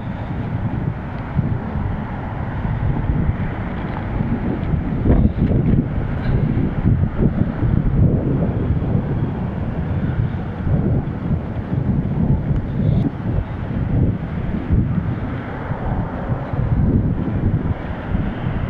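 Wind rumbles and buffets loudly against a moving bicycle.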